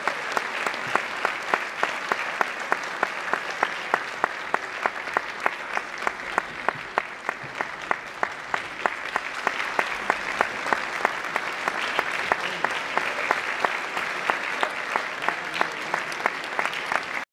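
A band plays brass and woodwind music in a large, echoing hall.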